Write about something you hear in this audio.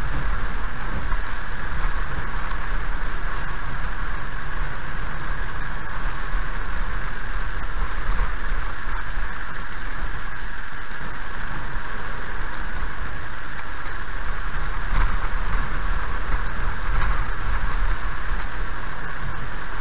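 Raindrops tap on a windscreen.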